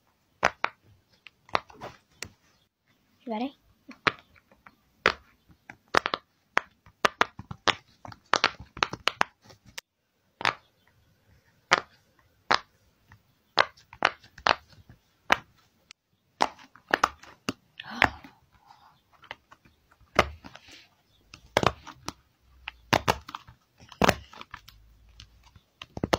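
Fingers press silicone bubbles that pop with sharp little clicks, close by.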